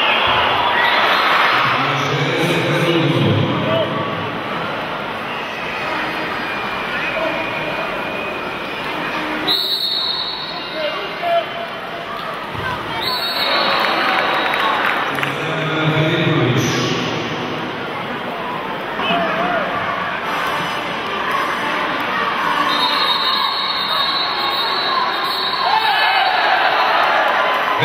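Water splashes as swimmers thrash and throw a ball in an echoing indoor pool.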